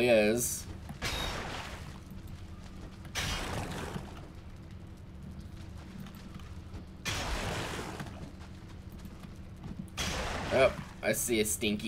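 A pickaxe strikes rock, and the rock crumbles with a rough crash.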